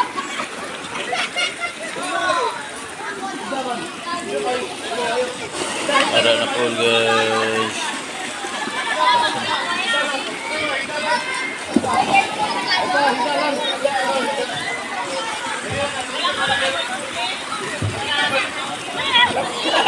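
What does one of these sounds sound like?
A crowd of children and adults chatter and shout in the background.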